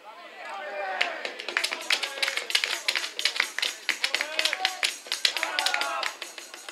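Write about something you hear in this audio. Players clap their hands rapidly.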